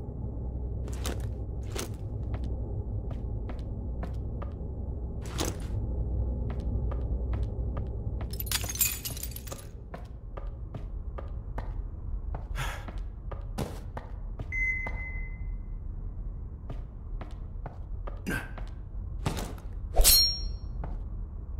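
Footsteps tread slowly across a gritty floor.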